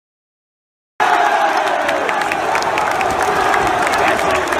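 A large crowd sings and chants loudly and close by, echoing around a stadium.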